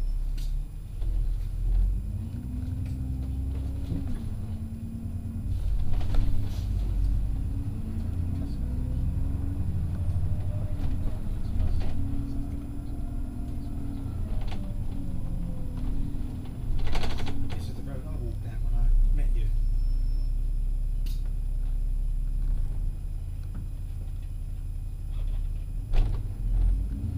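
A bus body rattles and knocks now and then over the road.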